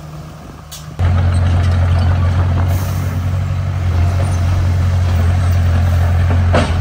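A bulldozer engine roars loudly up close.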